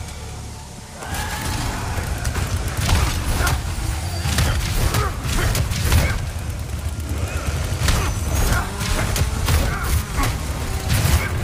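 Heavy blows thud in a rapid scuffle.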